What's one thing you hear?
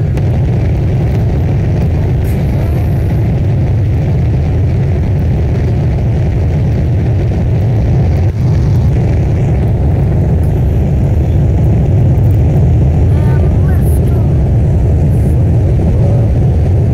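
Rocket engines roar steadily with a deep rumble.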